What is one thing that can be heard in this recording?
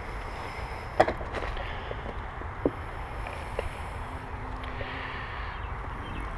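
A wooden beehive lid knocks and scrapes as it is lifted.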